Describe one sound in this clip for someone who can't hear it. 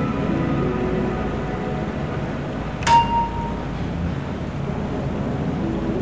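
A train rumbles past close by.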